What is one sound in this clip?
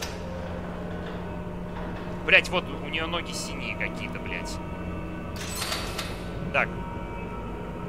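A metal gurney rolls and rattles across a tiled floor.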